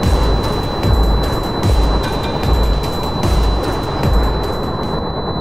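Deep booming blasts thud repeatedly.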